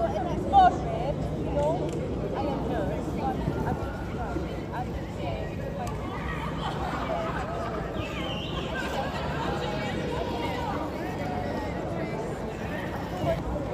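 Young adults talk and laugh nearby outdoors.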